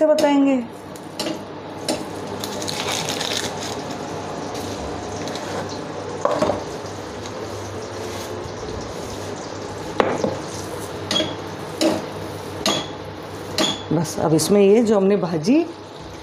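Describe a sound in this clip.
Butter sizzles and crackles in a hot pot.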